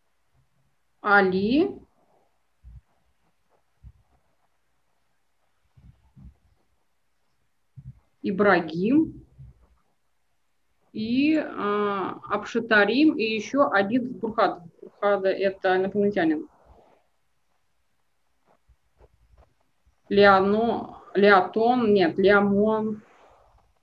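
A middle-aged woman speaks calmly in bursts, heard through an online call, with pauses between phrases.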